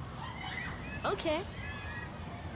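A young boy answers briefly.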